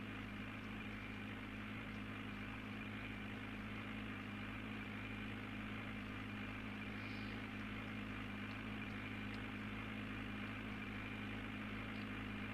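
A tractor engine drones steadily from inside the cab.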